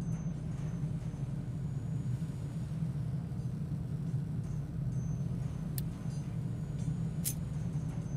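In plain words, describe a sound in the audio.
Machines hum and whir steadily.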